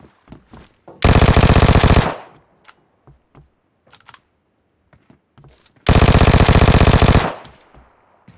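An automatic rifle fires in long bursts.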